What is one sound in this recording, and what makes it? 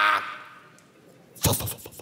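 A young woman laughs out loud.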